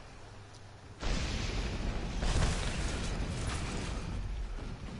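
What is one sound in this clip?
A shell explodes nearby with a heavy blast.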